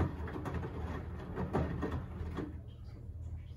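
Water sloshes in a washing machine drum.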